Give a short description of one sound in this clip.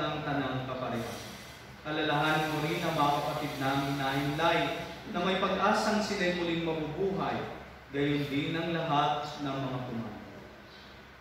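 A man chants a prayer in a sung voice through a microphone in an echoing room.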